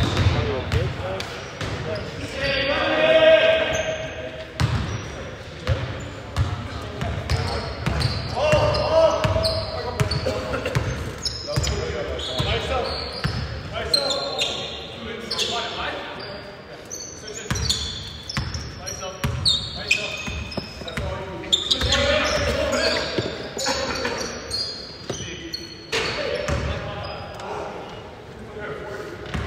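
A basketball bounces on a hard floor in an echoing hall.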